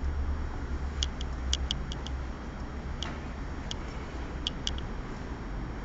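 Small paint pots and brushes clink lightly as they are handled.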